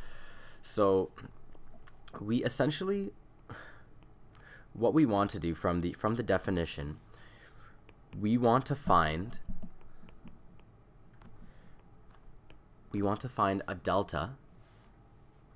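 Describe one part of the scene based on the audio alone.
A young man speaks calmly and closely into a microphone, with pauses.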